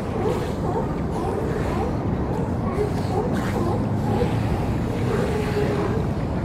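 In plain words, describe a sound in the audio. Water sloshes and splashes around swimming sea lions.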